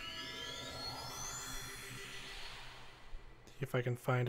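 A shimmering magical whoosh rises in pitch and fades.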